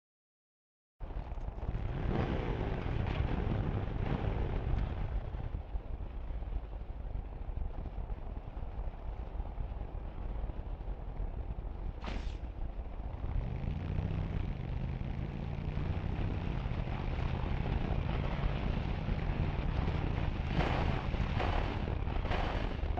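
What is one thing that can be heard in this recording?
A motorcycle engine roars and revs loudly.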